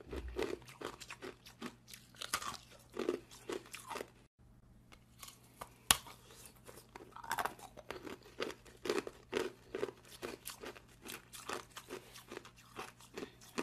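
A woman licks and sucks wetly on ice close to a microphone.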